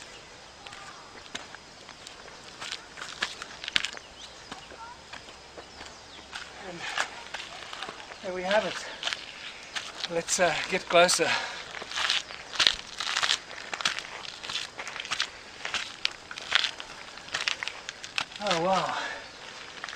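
Footsteps scuff and crunch on rock and gravel.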